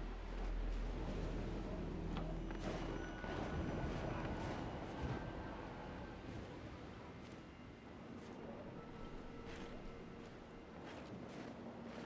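Heavy boots tramp and crunch over snowy ground.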